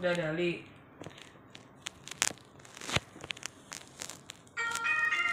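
Fingers tap on a phone.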